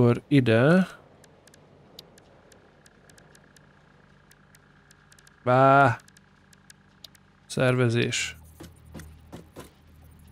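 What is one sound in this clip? Short electronic chirps and beeps sound as game menus open and close.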